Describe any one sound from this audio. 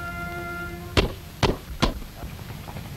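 A chisel taps on wood in sharp knocks.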